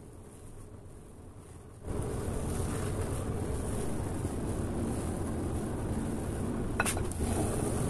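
A whisk beats batter against a glass bowl.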